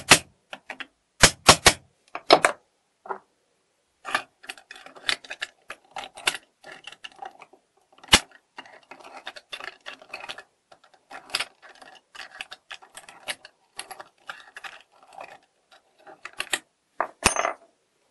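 Small metal parts click and scrape as they are handled.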